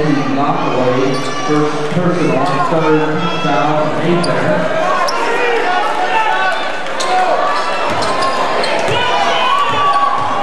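A crowd chatters and calls out throughout a large echoing gym.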